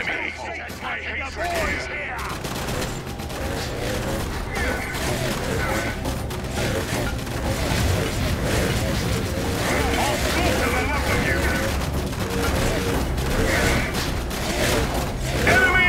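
Gunfire crackles and booms in a loud battle.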